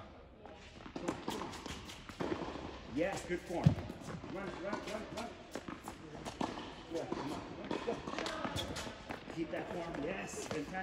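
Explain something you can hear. A man speaks with animation nearby in an echoing indoor hall.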